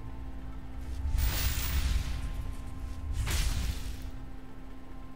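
Magical sparkling effects whoosh and burst.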